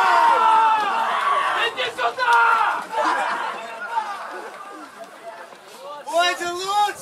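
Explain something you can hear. Young men shout and cheer excitedly outdoors.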